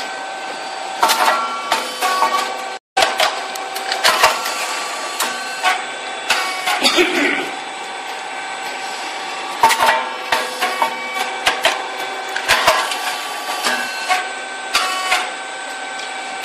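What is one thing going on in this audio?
A rice cake popping machine pops cakes with sharp bangs.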